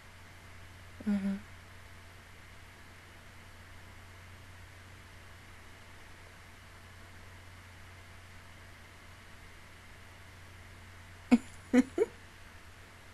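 A young woman laughs briefly close to a microphone.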